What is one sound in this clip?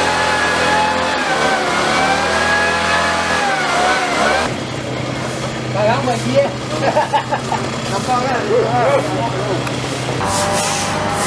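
A motor sprayer hums steadily.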